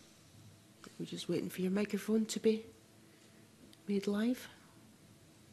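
A woman speaks through a microphone in a calm voice.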